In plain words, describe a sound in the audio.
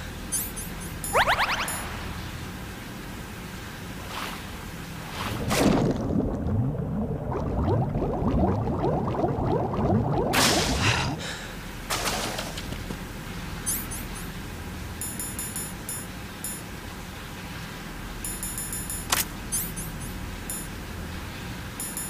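Short electronic beeps sound as menu items are selected.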